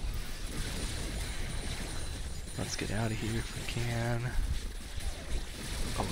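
Rapid electronic zaps and blasts crackle in a busy game battle.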